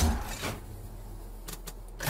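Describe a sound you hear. An energy beam crackles and hums.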